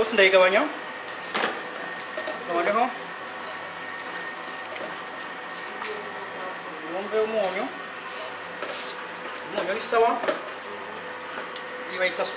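A wooden spoon stirs sauce in a metal pan.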